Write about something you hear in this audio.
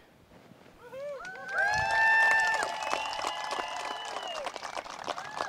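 A crowd cheers and whoops.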